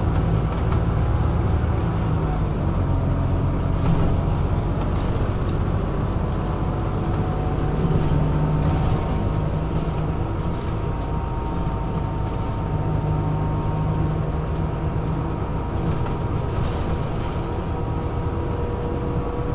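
Tyres hum steadily on the road.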